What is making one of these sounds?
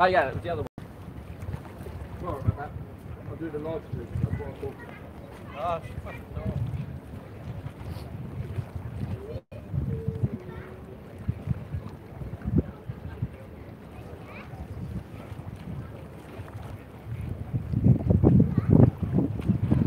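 Water laps against a wall outdoors.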